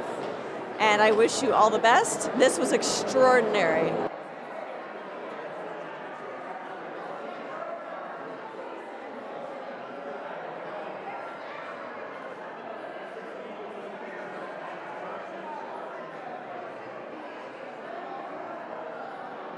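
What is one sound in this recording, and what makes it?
A crowd of men and women chatter and murmur throughout.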